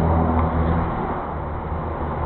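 A fuel pump hums as petrol flows into a tank.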